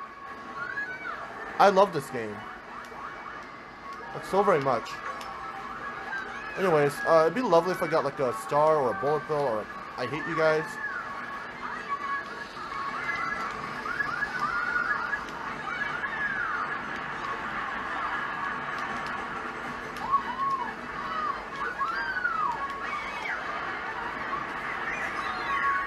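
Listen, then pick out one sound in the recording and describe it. A video game's music plays through a television speaker.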